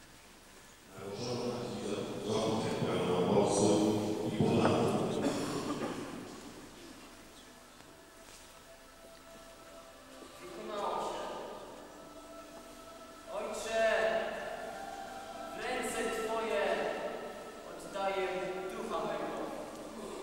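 A young man sings loudly in an echoing hall.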